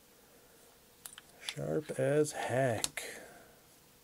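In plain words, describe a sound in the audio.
Small metal bits click and rattle in a plastic case.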